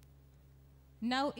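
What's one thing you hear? A young woman speaks into a microphone, heard through loudspeakers.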